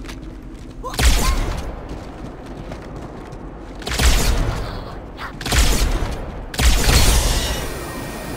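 An energy weapon fires crackling plasma bursts with deep booms.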